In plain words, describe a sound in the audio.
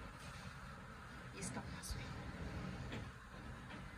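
Fabric rustles softly as a hand handles a garment.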